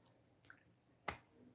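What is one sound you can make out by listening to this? A young girl blows a kiss.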